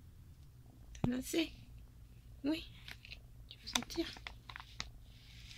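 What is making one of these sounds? A kitten mews several times.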